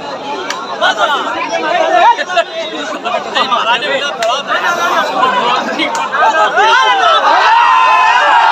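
A large outdoor crowd shouts and cheers excitedly, growing louder.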